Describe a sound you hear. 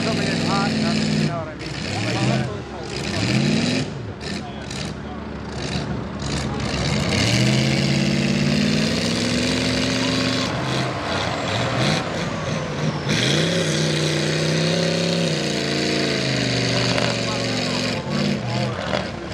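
A truck engine revs hard, rising and falling as the truck churns through mud.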